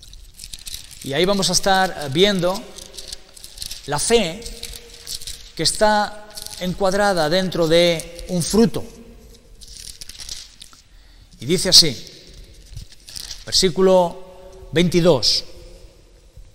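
A middle-aged man speaks calmly and haltingly into a close microphone, with long pauses.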